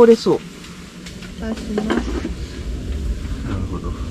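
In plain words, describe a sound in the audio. A metal lid clinks onto a pot.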